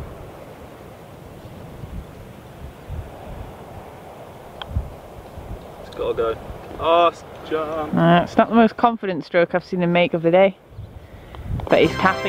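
A putter taps a golf ball.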